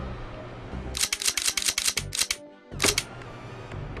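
Short electronic clicks and blips from a game menu sound in quick bursts.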